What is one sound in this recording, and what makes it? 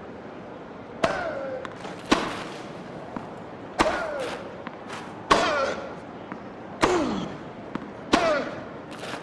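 A tennis ball is struck back and forth with sharp pops of a racket.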